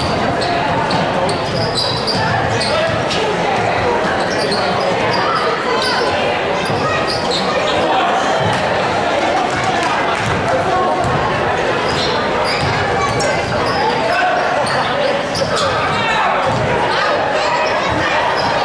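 A crowd in a large echoing gym chatters and cheers throughout.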